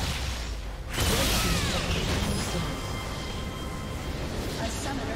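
A game tower crumbles and explodes.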